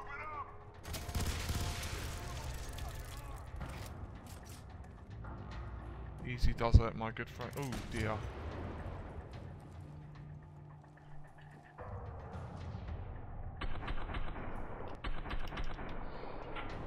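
A rifle fires in sharp bursts of shots.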